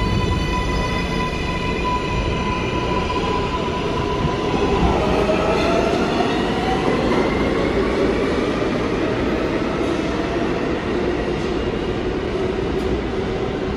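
A subway train pulls away and rumbles off down a tunnel.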